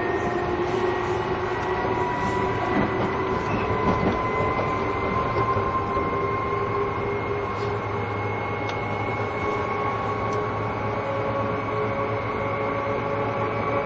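An electric train's motor whines steadily as the train rolls slowly along the track.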